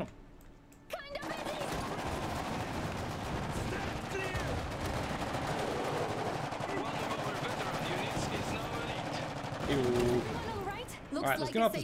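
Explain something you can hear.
Gunfire crackles rapidly.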